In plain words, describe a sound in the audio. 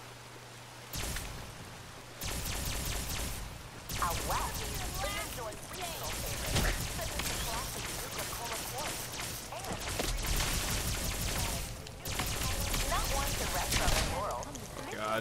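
Energy weapon blasts crackle and zap in rapid bursts.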